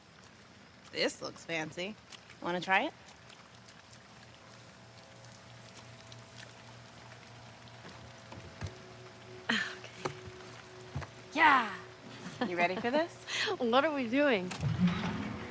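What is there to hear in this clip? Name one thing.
A young woman speaks playfully, close by.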